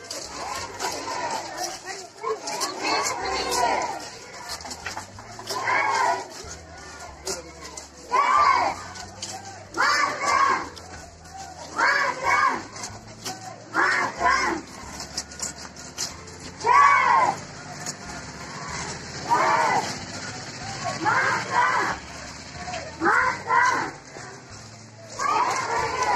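A group of children chant slogans in unison outdoors.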